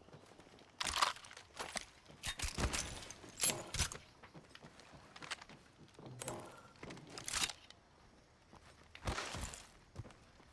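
Short clicks and rattles sound as items are picked up.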